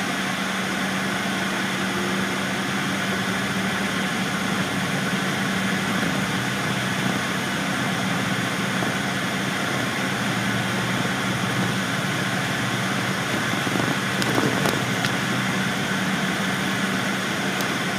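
A vehicle's engine hums steadily.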